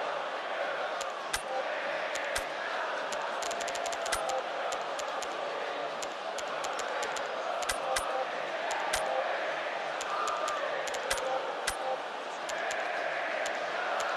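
Short electronic menu clicks sound in quick bursts.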